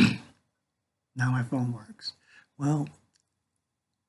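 An older man speaks calmly and close to a microphone, in short bursts.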